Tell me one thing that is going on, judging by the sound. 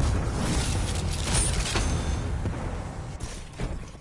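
Heavy mechanical footsteps of a giant robot thud and clank.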